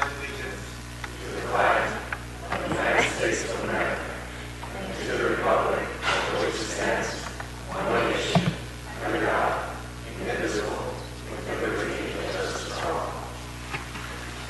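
A group of people recite together in unison in a large echoing hall.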